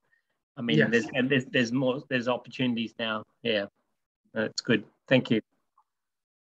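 An older man speaks with animation over an online call.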